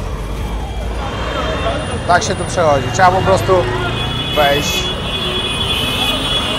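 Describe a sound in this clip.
Busy street traffic rumbles steadily outdoors.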